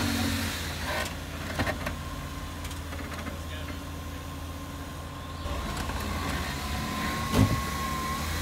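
Tyres scrape and thud against rock.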